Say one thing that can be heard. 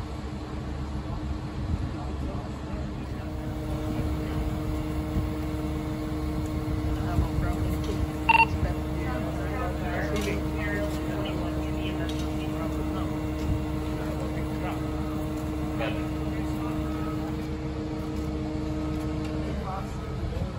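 A fire truck engine hums steadily nearby.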